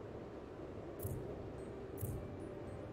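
A game menu gives soft clicks.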